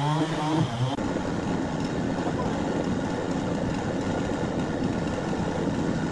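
A chainsaw roars as it cuts into a large log.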